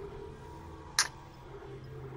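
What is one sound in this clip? A menu interface clicks as an item is selected.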